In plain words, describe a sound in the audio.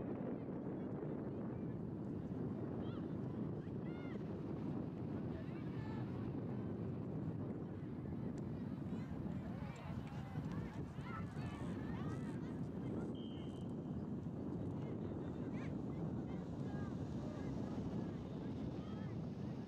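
Wind blows steadily across an open field.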